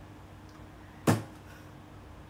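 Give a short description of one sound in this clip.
A cardboard box thumps once.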